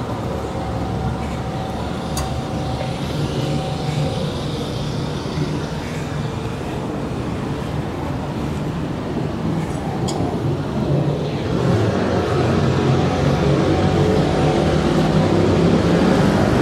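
City traffic rumbles steadily on a street outdoors.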